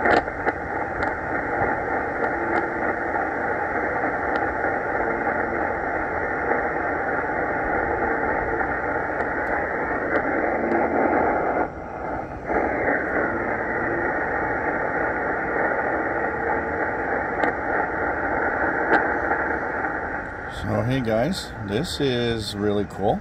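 A shortwave radio hisses and crackles with static and a faint signal through its speaker.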